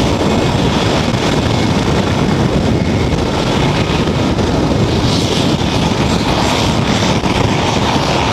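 A helicopter's rotor blades thump loudly and steadily nearby.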